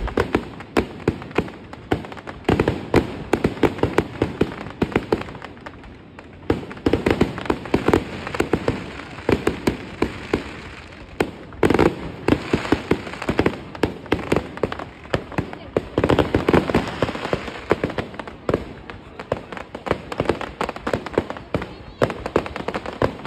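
Fireworks bang and crackle rapidly outdoors.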